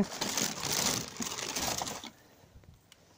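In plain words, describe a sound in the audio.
Cardboard rustles and scrapes as it is handled.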